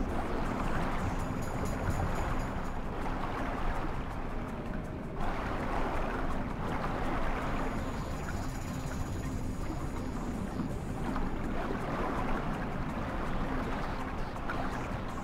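Water swirls and surges in slow, muffled waves underwater.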